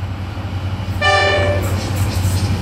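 A train horn blasts briefly.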